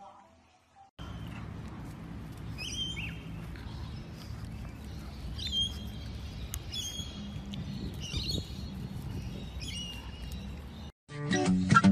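A dog gnaws and chews on a stick.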